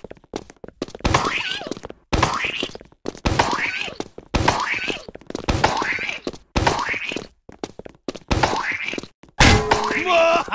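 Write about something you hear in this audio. A launcher fires repeatedly with loud whooshing bursts.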